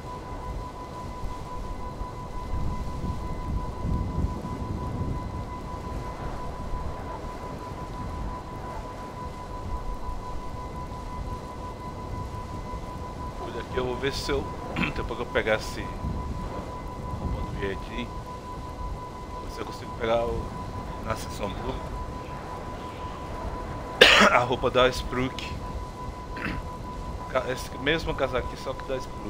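A hover bike's engine hums steadily.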